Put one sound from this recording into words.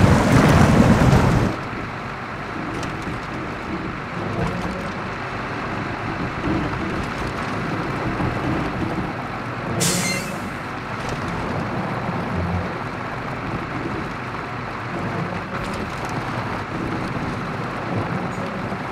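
Tyres crunch over rough gravel and rocks.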